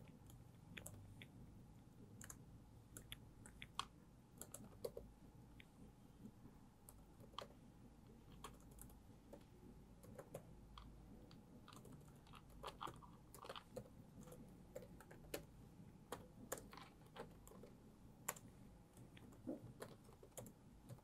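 Keys clatter quickly on a laptop keyboard.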